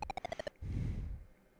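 A retro video game plays a quick run of falling electronic beeps.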